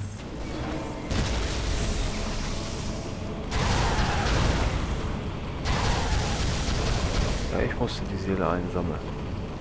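A spacecraft engine hums and roars steadily.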